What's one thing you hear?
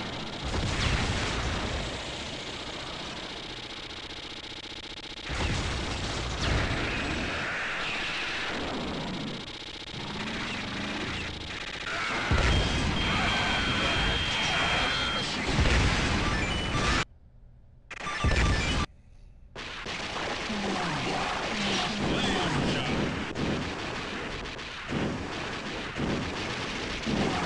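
Arcade game explosions boom loudly.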